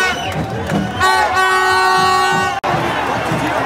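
A plastic horn blares nearby.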